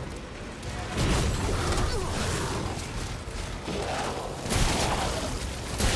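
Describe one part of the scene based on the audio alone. A heavy gun fires loud bursts of shots.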